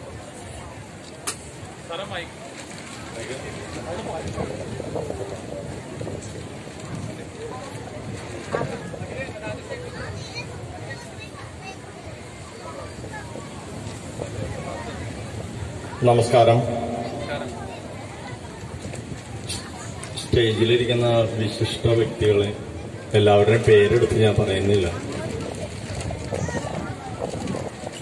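A man speaks loudly into a microphone through loudspeakers, outdoors.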